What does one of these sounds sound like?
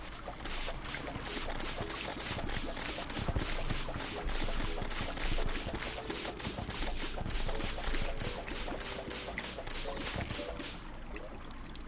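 Rapid video game hit sounds clatter in quick succession.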